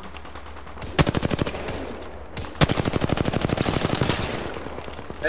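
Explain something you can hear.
Rapid bursts of automatic gunfire crack loudly.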